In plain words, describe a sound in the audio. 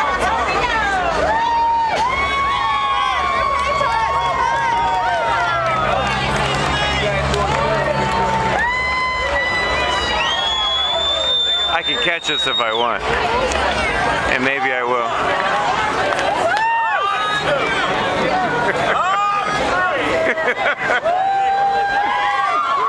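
A crowd of men and women chatters and calls out nearby outdoors.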